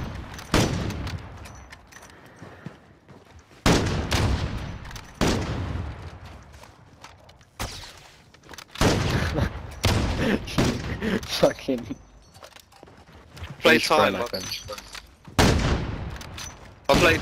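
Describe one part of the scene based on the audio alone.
A rifle fires loud, sharp shots that ring out and echo away.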